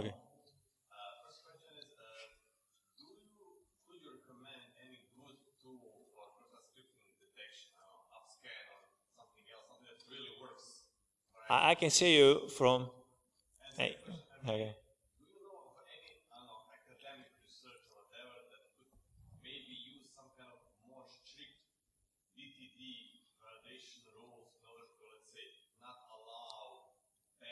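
A man talks calmly through a microphone in a large hall, with pauses.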